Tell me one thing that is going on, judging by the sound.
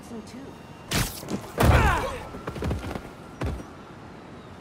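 Heavy thuds and blows land in a scuffle.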